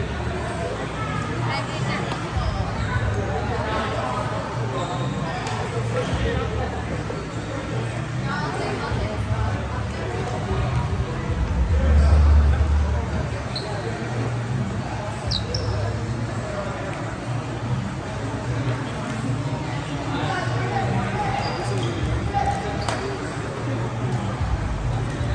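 A crowd of young men and women chatter in a large echoing hall.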